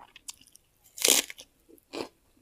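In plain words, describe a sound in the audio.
A crisp vegetable crunches sharply as a young woman bites into it.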